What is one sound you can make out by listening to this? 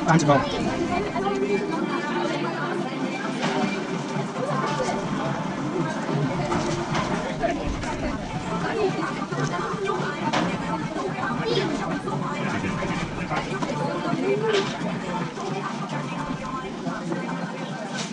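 Two young men talk with each other, close by.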